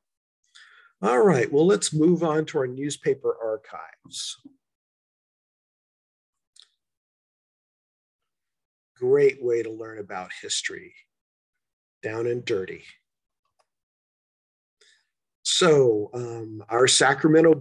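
An older man speaks calmly through an online call, in bursts with pauses.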